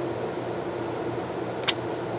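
Sticky tape snaps sharply as it is cut.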